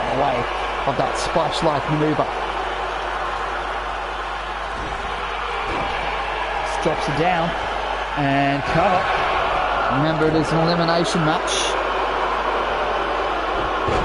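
A large crowd cheers steadily in a big echoing arena.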